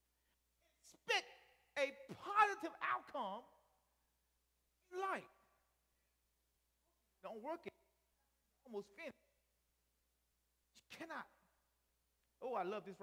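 A man preaches with animation through a microphone, in short bursts with pauses.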